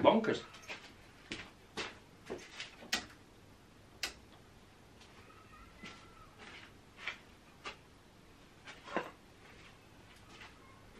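A switch clicks several times inside a car.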